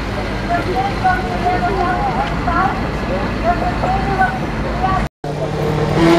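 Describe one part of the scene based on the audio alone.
A truck drives past on a nearby road.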